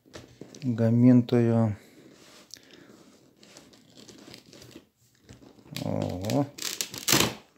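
A cardboard box scrapes and taps softly against hands.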